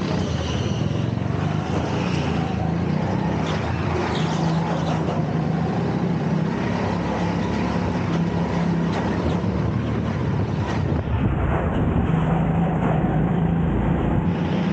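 Tyres scrub and rumble over the track surface.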